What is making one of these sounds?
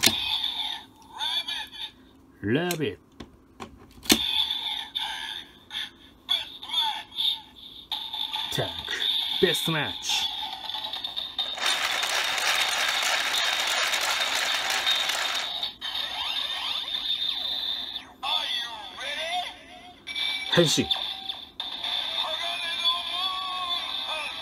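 An electronic toy plays loud music and sound effects through a small speaker.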